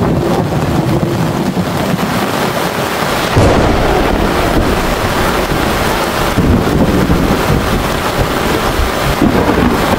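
Steady rain falls outdoors, pattering on a thatched roof.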